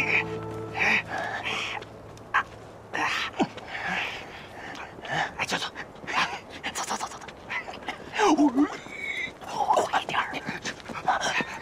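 Young men talk and shout with animation nearby.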